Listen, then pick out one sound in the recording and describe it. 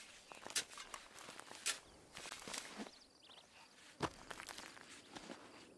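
Hands scrape and dig in dry, sandy dirt.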